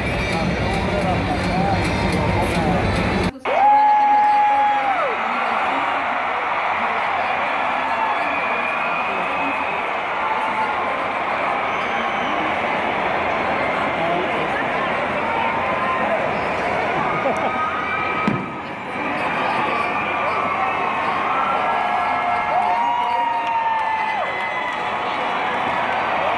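A huge crowd roars and cheers in a vast open stadium.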